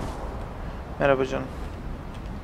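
A young man speaks briefly and casually into a close microphone.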